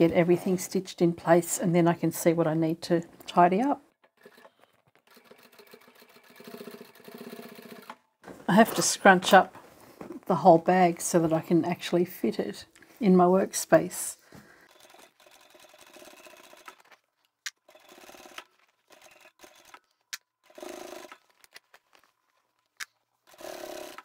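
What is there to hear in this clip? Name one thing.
A sewing machine hums and stitches.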